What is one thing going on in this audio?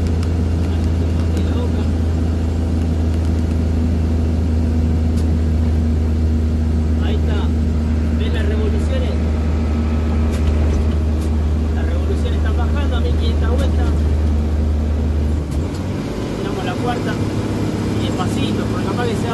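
Tyres roar on the road at speed.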